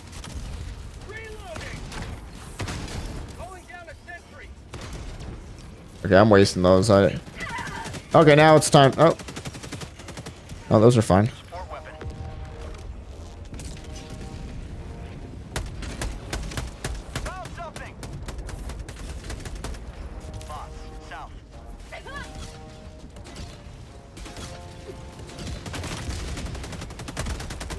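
Laser blasts zap and explosions rumble.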